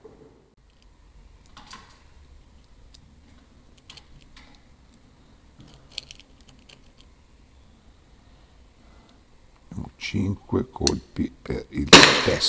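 Small plastic parts click in a man's hands.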